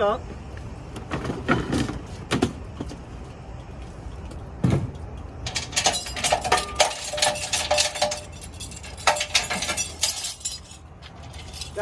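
Metal parts clank and rattle.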